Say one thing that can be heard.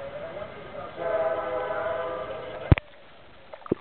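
A dog paddles and splashes through water.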